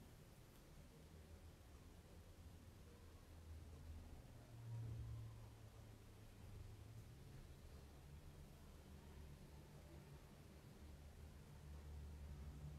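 A paintbrush brushes softly across paper.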